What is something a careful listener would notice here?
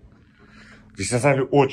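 A young man speaks with animation close by.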